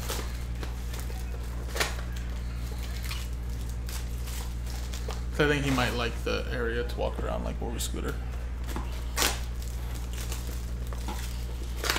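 Plastic wrap crinkles as a pack is torn open.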